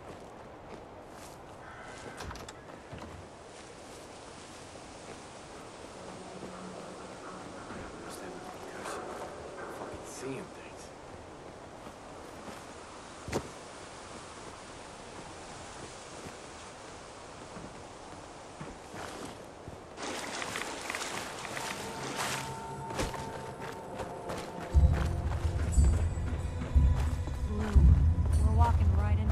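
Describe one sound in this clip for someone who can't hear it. Footsteps crunch over rubble and broken ground.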